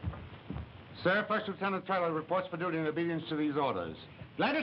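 A man speaks calmly in reply.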